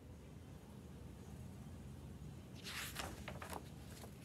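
Pages of a book rustle as they turn.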